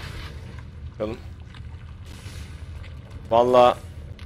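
A man speaks briefly into a close microphone, with short exclamations.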